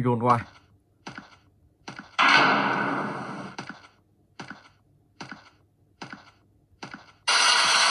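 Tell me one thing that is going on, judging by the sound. Footsteps thud steadily along a stone corridor.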